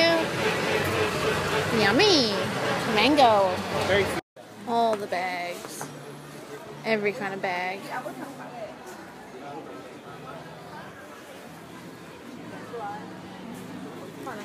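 A crowd of people chatters around.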